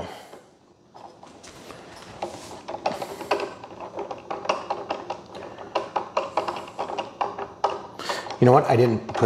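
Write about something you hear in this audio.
A screwdriver ratchets with quick small clicks.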